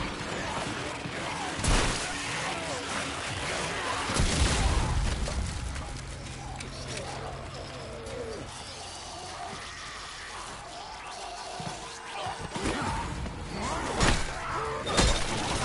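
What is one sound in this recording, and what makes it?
A creature snarls and growls close by.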